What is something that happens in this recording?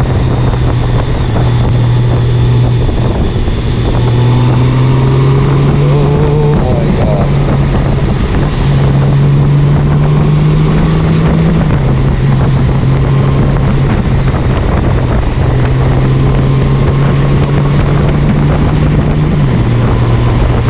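A flat-six touring motorcycle engine hums while cruising on a country road.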